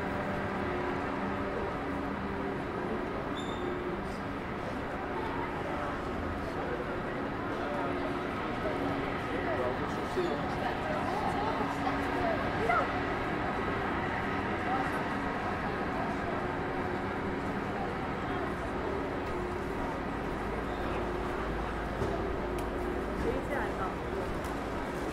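A busy city street hums with steady traffic noise.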